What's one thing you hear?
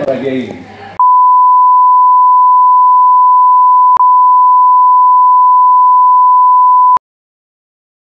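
A steady high test tone sounds.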